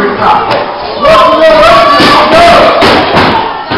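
A man shouts loudly over a crowd.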